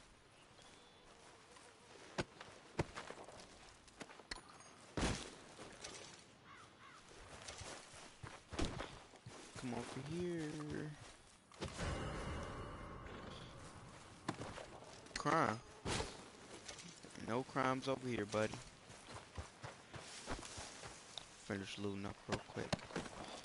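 Footsteps crunch through grass.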